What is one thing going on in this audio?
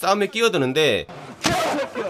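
A young man cries out in pain.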